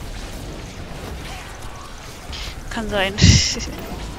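Explosions boom in a video game.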